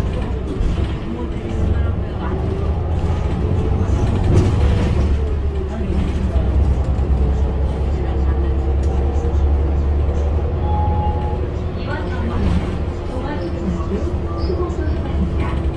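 A bus engine hums steadily from inside the cabin.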